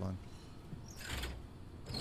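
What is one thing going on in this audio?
A switch clicks.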